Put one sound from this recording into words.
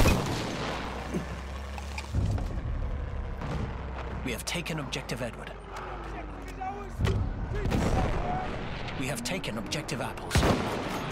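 Gunfire crackles in sharp bursts.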